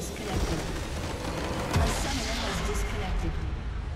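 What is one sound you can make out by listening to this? A structure explodes with a booming blast.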